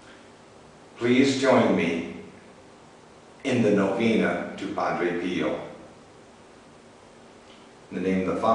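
An elderly man speaks calmly and slowly close by, with pauses.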